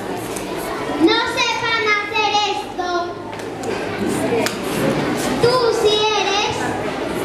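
A child sings in a high voice in an echoing hall.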